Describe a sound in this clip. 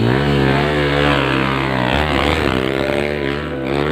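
A motorcycle rides away.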